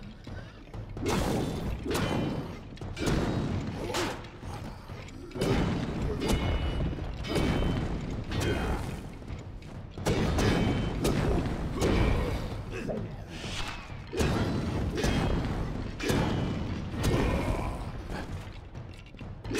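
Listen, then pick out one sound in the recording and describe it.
A sword slashes and strikes with sharp metallic hits.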